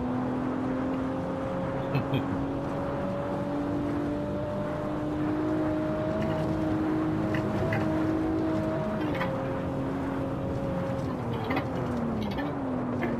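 A car engine drones steadily, slowly rising in pitch and then dropping as the car slows.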